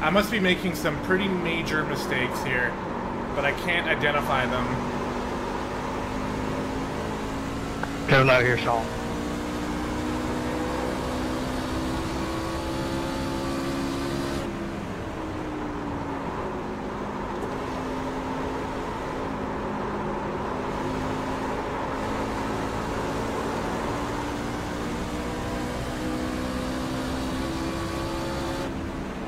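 A race car engine drones steadily, its pitch shifting as it speeds up and slows.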